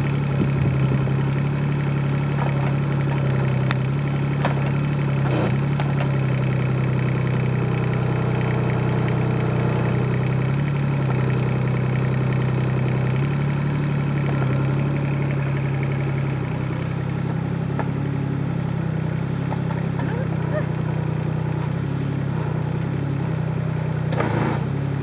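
A small diesel excavator engine hums steadily close by.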